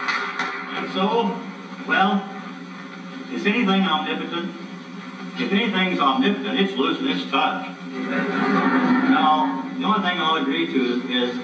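An elderly man speaks to an audience in a large hall.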